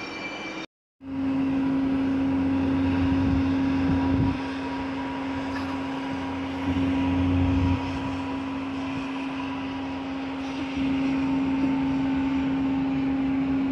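A train rumbles and hums steadily while moving.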